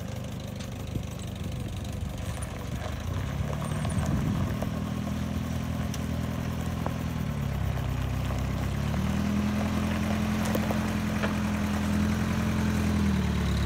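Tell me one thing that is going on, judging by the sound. An old jeep engine rumbles and revs as the jeep drives slowly closer.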